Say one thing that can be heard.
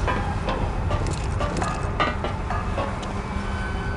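Boots climb the rungs of a metal ladder.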